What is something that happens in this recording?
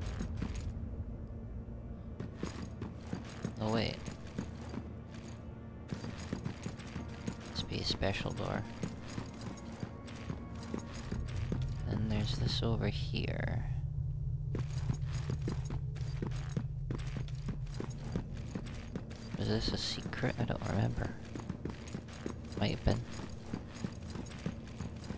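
Armoured footsteps thud and clank steadily on a hard floor.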